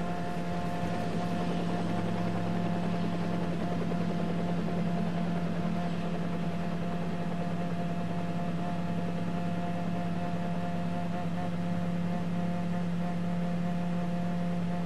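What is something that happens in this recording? A race car engine idles with a steady hum.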